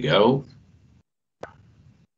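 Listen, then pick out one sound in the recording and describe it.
A man speaks through an online call.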